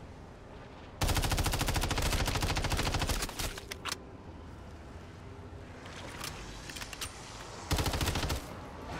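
A rifle fires rapid automatic bursts close by.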